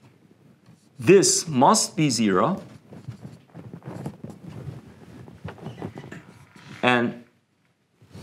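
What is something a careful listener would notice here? A man speaks with animation, as if lecturing.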